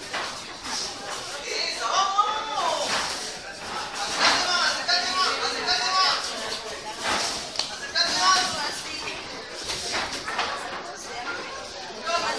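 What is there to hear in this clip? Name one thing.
A man shouts loudly and excitedly nearby.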